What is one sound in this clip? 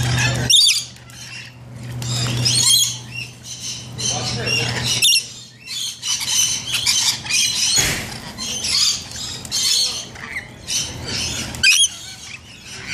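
Parrots squawk in sharp, high bursts.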